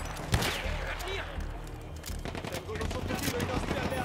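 A gun is reloaded with metallic clicks.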